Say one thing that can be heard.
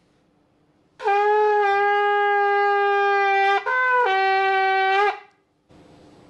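A ram's horn blasts short notes that break and rise.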